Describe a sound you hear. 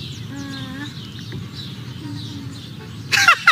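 A baby coos softly.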